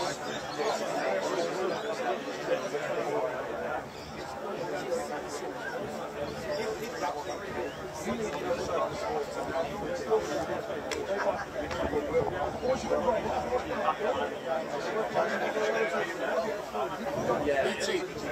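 A man speaks loudly and firmly to a group outdoors.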